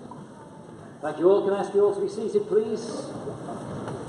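A man speaks into a microphone, heard through loudspeakers in a large echoing hall.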